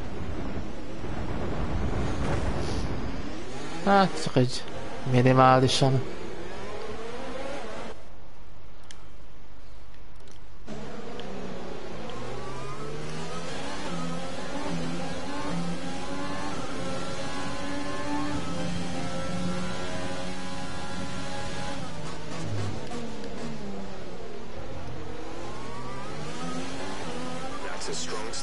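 Racing car engines roar loudly, their pitch rising and falling as they rev and shift gears.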